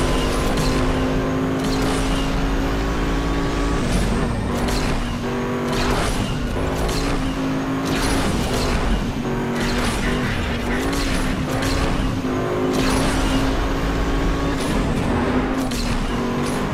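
A motorbike engine roars steadily at high speed.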